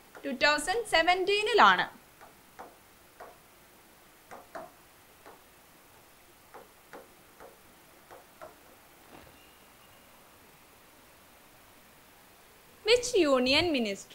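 A young woman speaks clearly into a close microphone.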